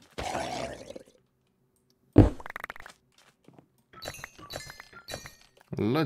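Blocks crack and crumble as they are broken.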